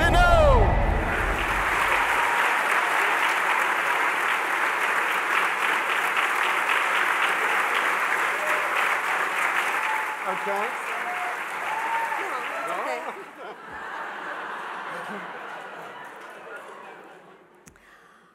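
An audience applauds loudly in a large hall, then the applause slowly fades.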